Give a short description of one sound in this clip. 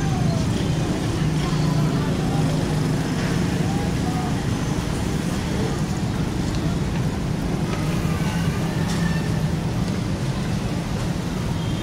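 People chatter faintly in a crowd.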